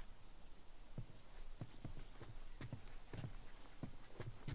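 Heavy footsteps thud at a steady walking pace.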